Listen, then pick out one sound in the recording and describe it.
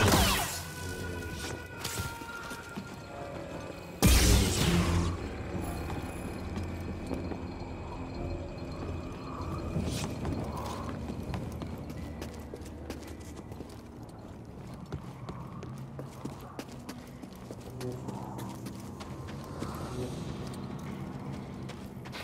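Footsteps thud on wooden planks and rock.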